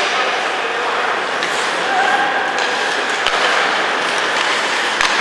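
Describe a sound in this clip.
A crowd murmurs and cheers in a large echoing arena.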